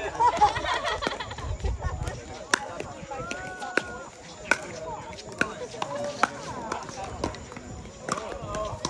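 Paddles hit a plastic ball with sharp pops outdoors.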